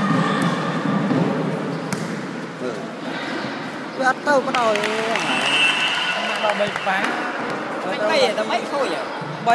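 A crowd of children and young people chatter in a large echoing hall.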